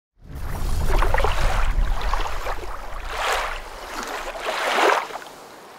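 Waves wash over a rocky shore.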